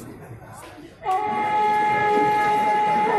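A man chants loudly in a long, steady voice through a loudspeaker.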